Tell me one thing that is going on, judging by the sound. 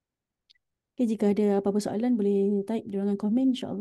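An older man recites in a slow, melodic chant close to a microphone.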